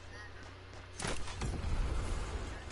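Glass shatters as a window breaks.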